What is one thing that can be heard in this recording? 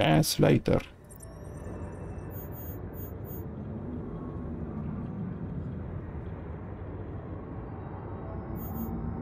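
A low, steady underwater rumble drones.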